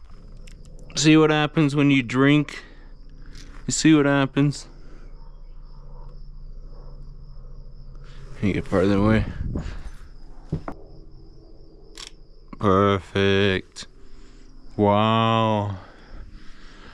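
A man speaks casually in short bursts, close to the microphone.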